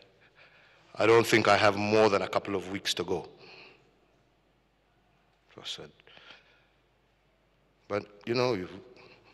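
A middle-aged man speaks slowly and formally into a microphone, with pauses between phrases.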